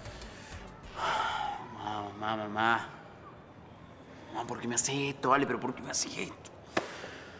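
A young man sobs and groans loudly nearby.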